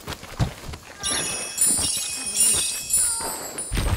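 A bright, sparkling chime rings out.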